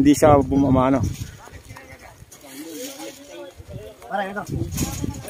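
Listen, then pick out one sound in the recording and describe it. Men talk and call out nearby in a group.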